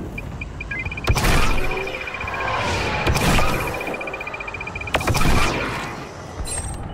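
A heavy rifle fires loud shots that boom and echo.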